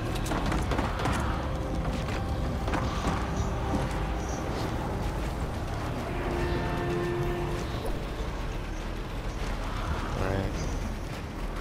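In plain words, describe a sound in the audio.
Wooden walls and ramps clatter as they are quickly built.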